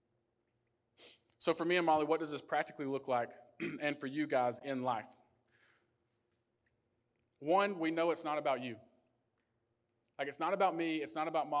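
A young man speaks calmly into a microphone, heard through a loudspeaker, with long pauses.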